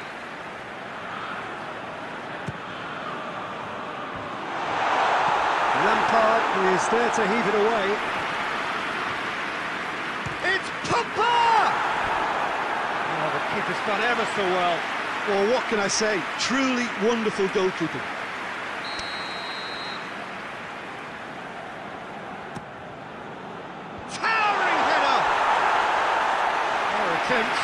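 A large stadium crowd murmurs and roars, swelling into loud cheers at times.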